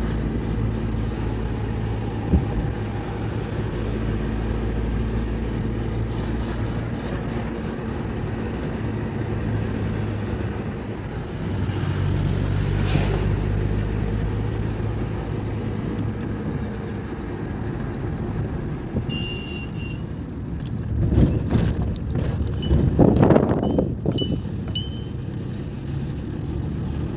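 Wind rushes past an open car window.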